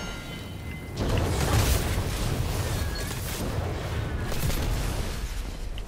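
A fiery blast roars and crackles close by.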